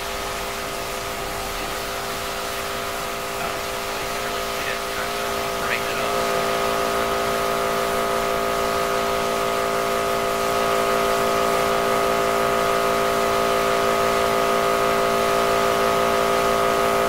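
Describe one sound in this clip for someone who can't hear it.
A pressure washer sprays a jet of water against metal with a steady hiss.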